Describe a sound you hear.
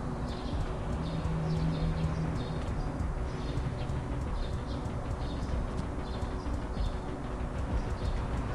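A vehicle engine rumbles as it drives past.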